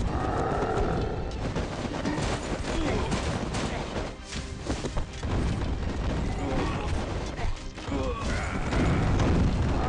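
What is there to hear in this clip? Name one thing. Explosions boom and crackle repeatedly.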